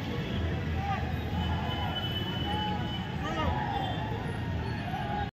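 A crowd of men chants and shouts loudly outdoors.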